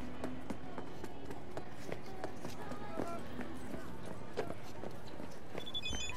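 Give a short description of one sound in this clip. Footsteps tap steadily on a hard street.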